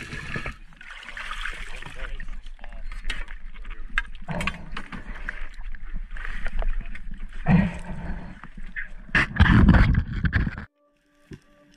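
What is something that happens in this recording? Diving gear knocks and bumps against a boat's hull.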